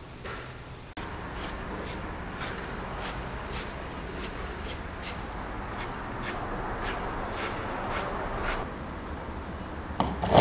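A paintbrush dabs on wet cement.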